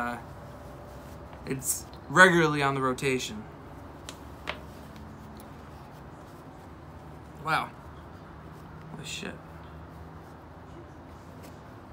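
Paper rustles and crinkles as it is unwrapped.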